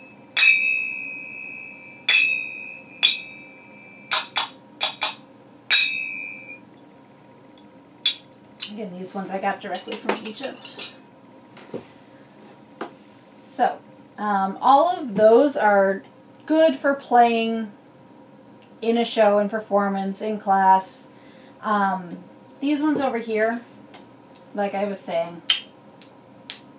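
Small metal finger cymbals clink together and ring out brightly.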